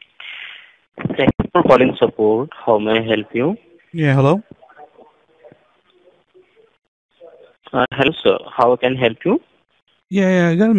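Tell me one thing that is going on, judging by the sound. A man talks into a telephone.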